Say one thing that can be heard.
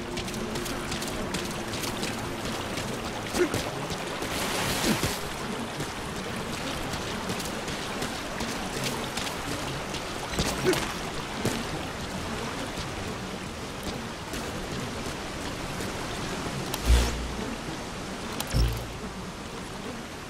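Footsteps crunch on gravel and rock.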